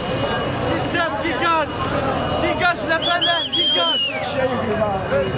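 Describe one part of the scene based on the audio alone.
Young men shout and cheer close by.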